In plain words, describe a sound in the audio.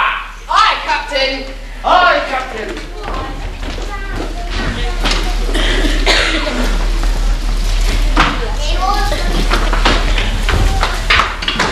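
Children sing loudly on a stage in an echoing hall.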